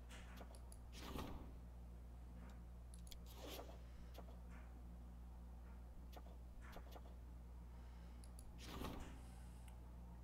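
Paper pages rustle and swish as they turn.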